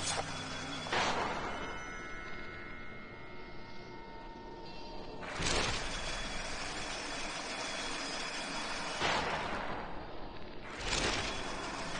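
A sharp magical whoosh rushes past.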